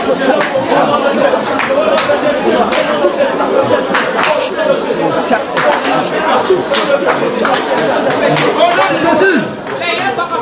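A crowd of women sings and prays aloud together.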